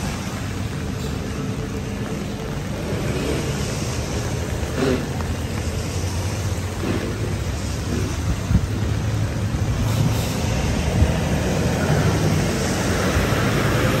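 A bus drives along a wet road and approaches.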